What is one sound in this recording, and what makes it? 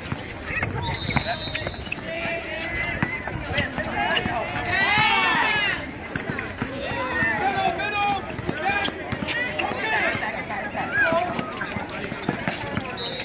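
Young men shout to each other across a basketball court.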